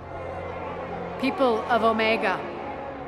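A woman declares loudly, her voice ringing in a large echoing space.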